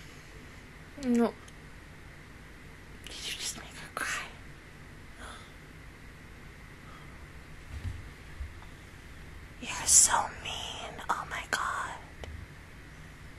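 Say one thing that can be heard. A young woman speaks in short bursts, close to a microphone.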